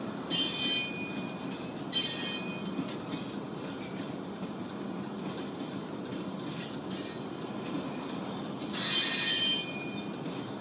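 Train wheels squeal in short bursts.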